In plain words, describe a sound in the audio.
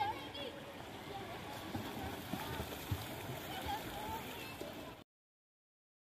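Swimmers splash in a pool.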